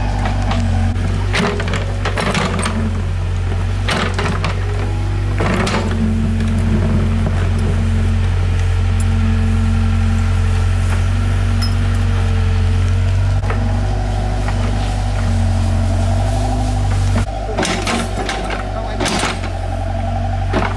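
An excavator bucket scrapes and digs into soil and stones.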